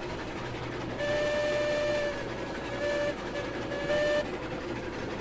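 A steam locomotive whistle blows steadily.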